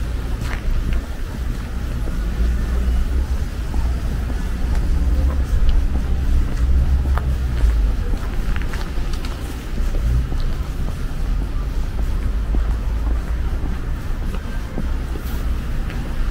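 Footsteps tap steadily on a pavement outdoors.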